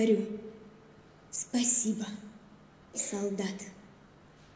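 A girl speaks into a microphone in a large echoing hall.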